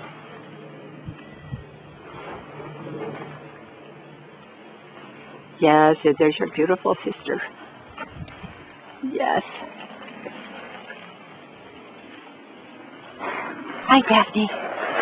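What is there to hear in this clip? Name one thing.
Paws scuffle and rustle over dry bark chips.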